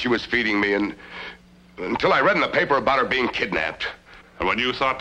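A man speaks with concern nearby.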